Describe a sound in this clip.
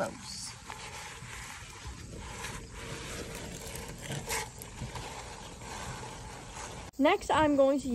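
A rag wipes and squelches against a greasy metal pan.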